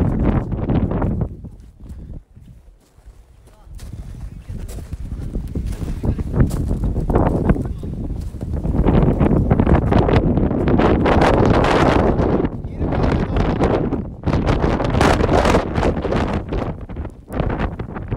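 A man speaks close up, breathless over the wind.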